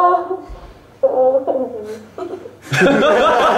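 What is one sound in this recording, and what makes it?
A young girl laughs close by.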